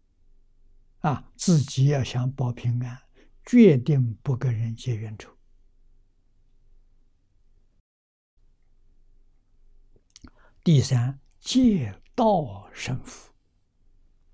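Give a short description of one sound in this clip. An elderly man speaks slowly and calmly, close to a microphone, with long pauses.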